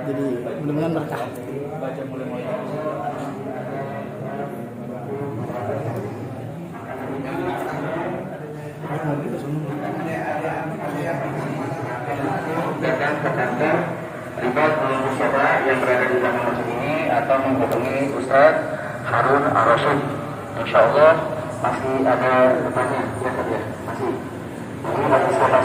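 A group of men chant together in unison, growing louder.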